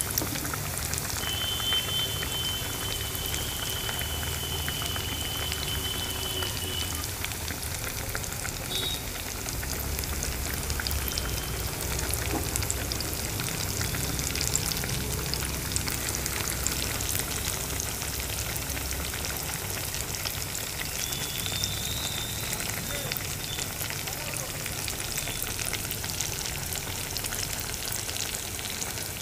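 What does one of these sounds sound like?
Hot oil sizzles and crackles steadily as food deep-fries.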